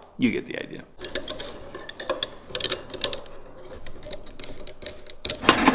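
A metal frame clicks and rattles against a blade.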